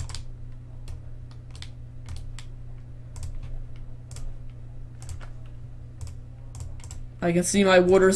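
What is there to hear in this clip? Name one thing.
Soft game clicks tick as items are moved.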